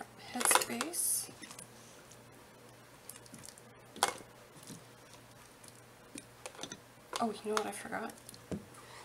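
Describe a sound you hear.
Food chunks clatter into a jar.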